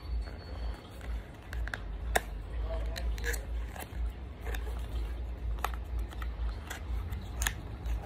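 A cardboard box rustles and clicks as it is handled and opened.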